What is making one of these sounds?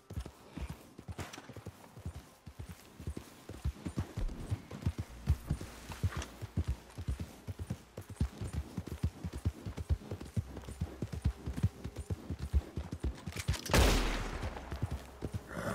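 A horse gallops over soft ground with rapid hoofbeats.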